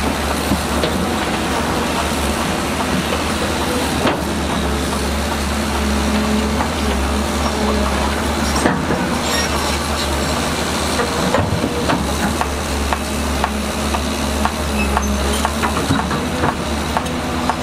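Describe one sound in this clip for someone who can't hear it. Mud and stones clunk as an excavator bucket digs.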